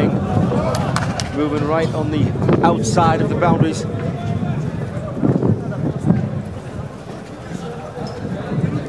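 A crowd murmurs and shouts in the open air.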